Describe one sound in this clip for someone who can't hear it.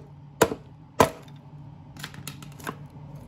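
Chipboard cracks and splinters as the box breaks apart.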